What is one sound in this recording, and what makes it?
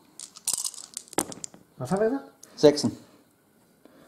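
Dice clatter into a tray.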